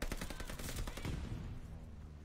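Rapid gunshots crack.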